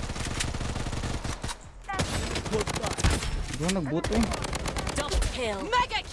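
Rapid gunshots crack in quick bursts.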